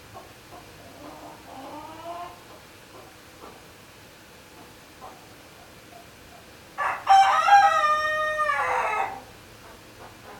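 A hen lets out loud, drawn-out squawks.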